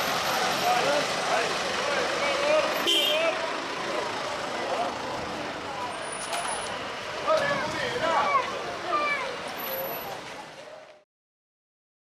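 A crowd of men and women chatter at a busy outdoor street market.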